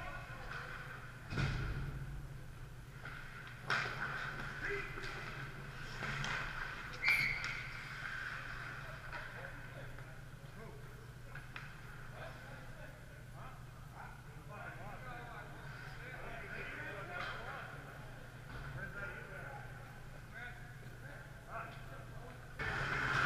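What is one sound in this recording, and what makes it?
Skates scrape and carve across the ice in a large echoing arena.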